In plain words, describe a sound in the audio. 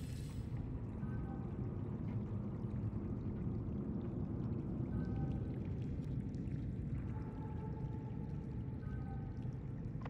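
A menu chimes softly as tabs switch.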